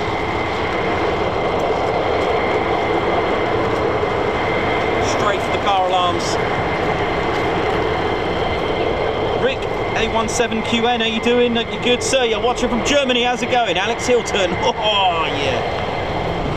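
A jet engine roars steadily at idle nearby, outdoors.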